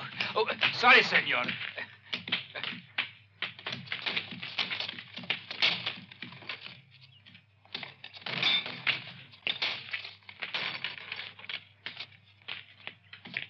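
A horse's hooves clop on gravel.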